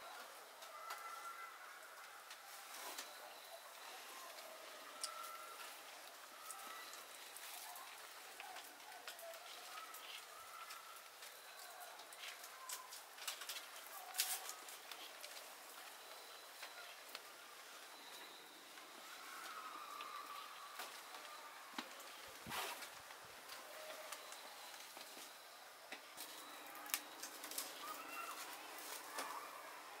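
Leafy plant tops rustle and crackle softly as they are handled close by.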